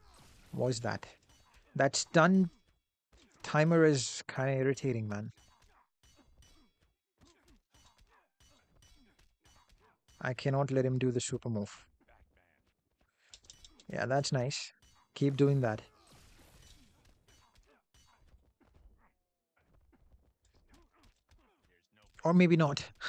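A young man talks with animation close to a microphone, in short bursts.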